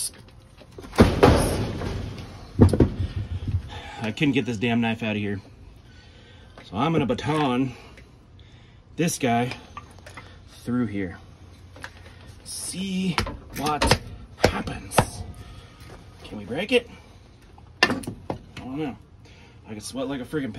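A hatchet chops into wood with sharp knocks.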